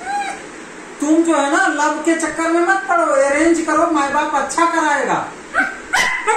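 A dog howls and whines in long, wavering yowls.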